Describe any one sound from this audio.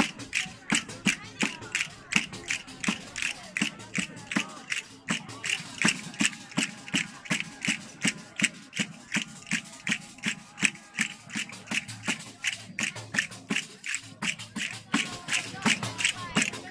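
A crowd claps quickly in a steady rhythm outdoors.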